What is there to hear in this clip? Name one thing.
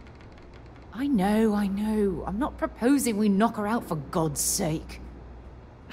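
A woman speaks firmly and with feeling, close by.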